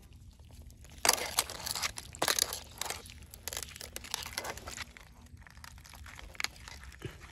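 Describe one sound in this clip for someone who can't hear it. Wet mud squelches and splashes as a hand digs through it.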